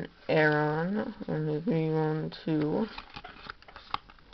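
Trading cards rub and slide against each other.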